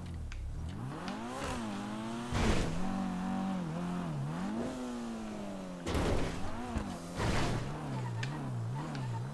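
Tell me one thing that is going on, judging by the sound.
A car engine revs up and down as the car races along.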